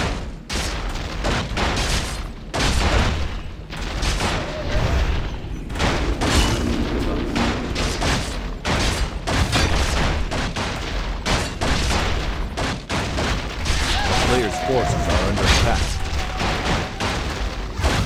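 Weapons clash and spells burst in a game battle.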